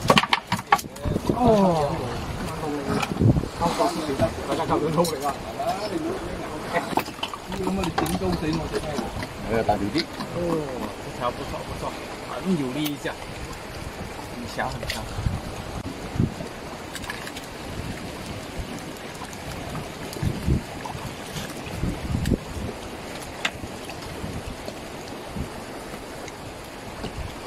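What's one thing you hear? Water laps against a small boat.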